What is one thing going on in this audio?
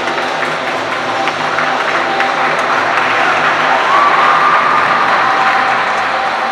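Ice skate blades scrape and glide across the ice in a large echoing hall.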